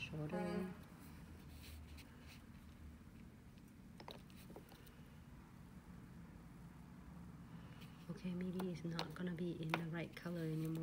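A small tool taps and clicks lightly against hard nails.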